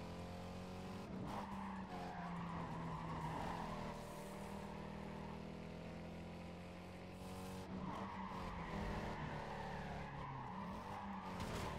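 Tyres screech while a car drifts around bends.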